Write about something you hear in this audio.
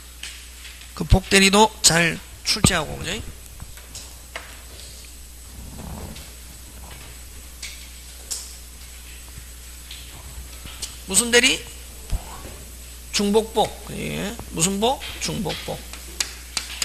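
A middle-aged man lectures through a microphone, speaking with animation in short bursts.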